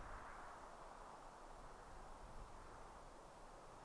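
Footsteps tap softly on a hard floor.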